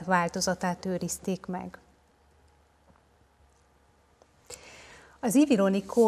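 A woman speaks calmly into a microphone, reading out a lecture.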